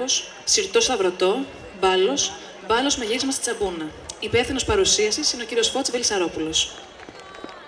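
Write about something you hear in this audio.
A young girl recites loudly through a microphone and loudspeakers.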